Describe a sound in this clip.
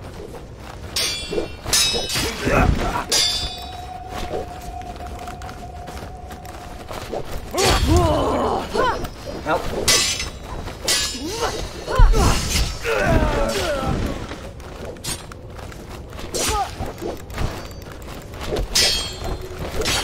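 Swords clash and clang in a game.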